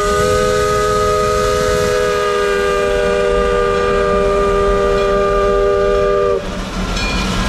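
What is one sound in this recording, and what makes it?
A steam locomotive's whistle blows loudly and steadily, then stops.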